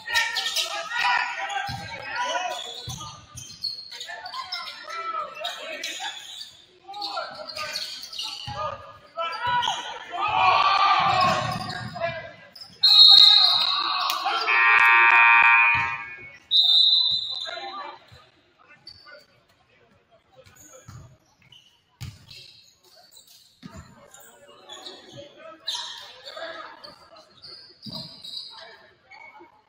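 Young players shout and call out across the court.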